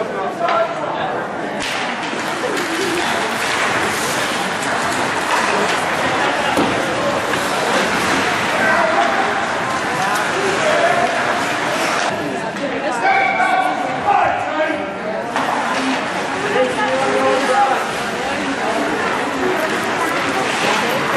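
Spectators chatter nearby in an echoing rink.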